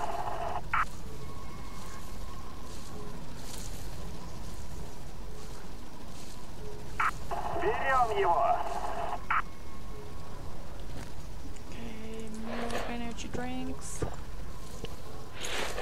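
Tall dry grass rustles as someone pushes through it.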